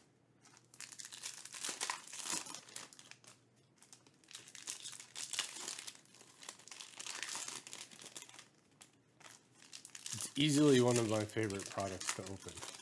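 Foil card wrappers crinkle and rustle as hands tear them open.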